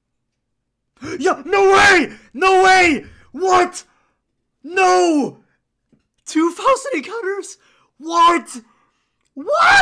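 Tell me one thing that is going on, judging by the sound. A young man shouts excitedly into a close microphone.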